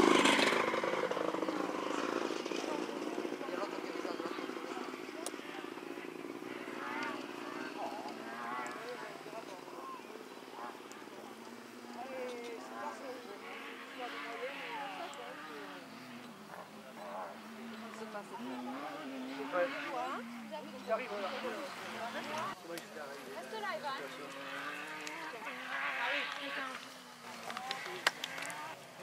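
A rally car engine roars and revs up and down in the distance.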